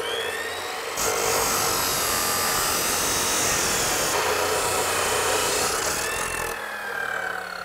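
An abrasive blade grinds loudly through metal.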